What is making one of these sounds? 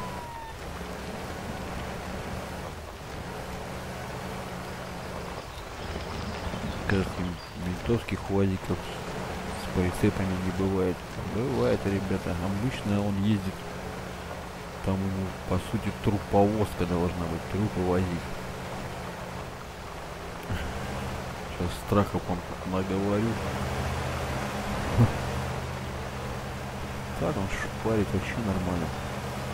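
A truck engine drones steadily while driving slowly.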